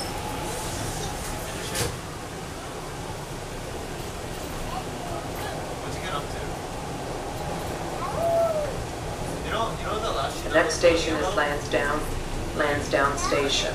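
A subway train rumbles along steadily.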